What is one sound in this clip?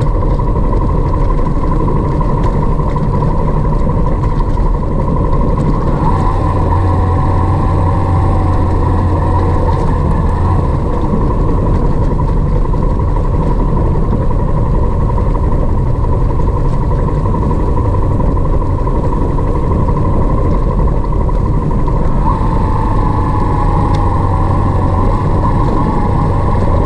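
Tyres crunch and rumble over a rough gravel road.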